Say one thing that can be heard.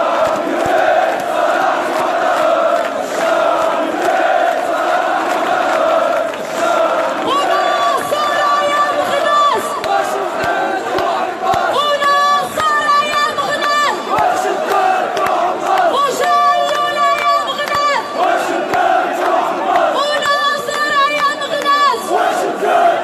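A large crowd chants loudly outdoors.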